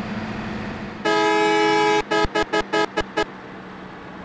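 A bus horn honks in a long blast, then several short toots.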